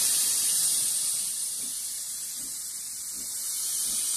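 A steam locomotive chuffs slowly as it pulls away.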